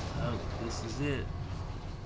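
Steam hisses from a vent.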